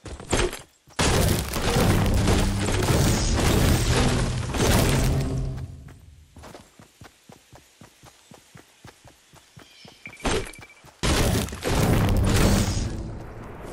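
A pickaxe chops into wood.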